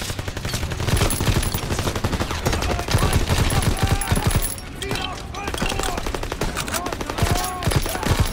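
Rapid gunfire bursts sound close by.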